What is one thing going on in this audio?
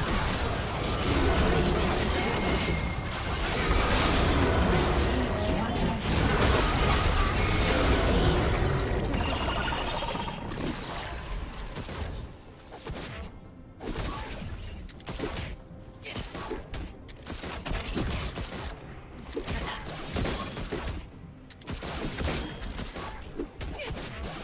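Fantasy spell blasts and magic impacts crash in quick bursts.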